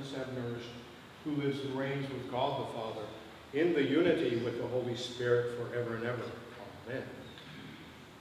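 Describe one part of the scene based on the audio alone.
An elderly man chants slowly through a microphone in a resonant, echoing room.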